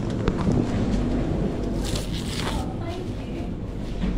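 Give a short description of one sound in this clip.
Plastic wrap crinkles around bread.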